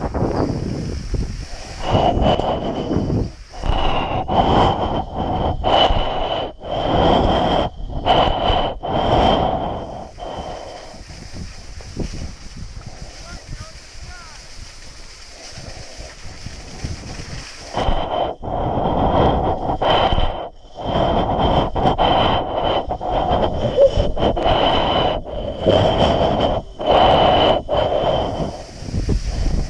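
Strong wind roars and gusts past a microphone outdoors.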